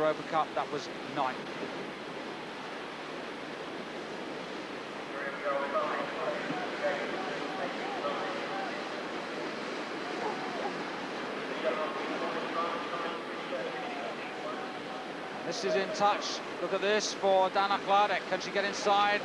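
A paddle splashes in the water.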